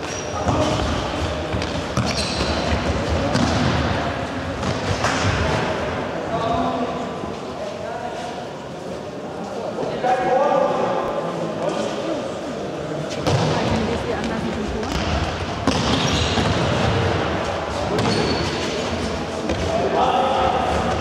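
A ball thumps sharply when kicked.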